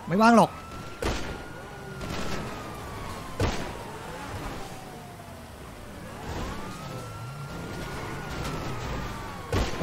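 Cars crash into each other with loud thuds.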